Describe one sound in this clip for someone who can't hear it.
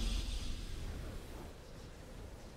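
A triumphant game fanfare booms and quickly fades.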